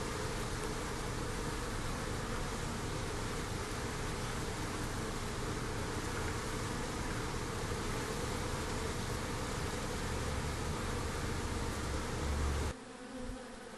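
Bees buzz close by.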